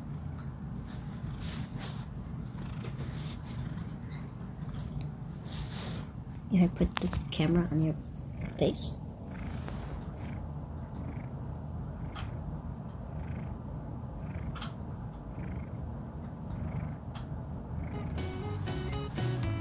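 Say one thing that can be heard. A cat purrs steadily and softly up close.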